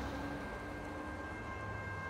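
A heavy truck's engine rumbles as it drives by.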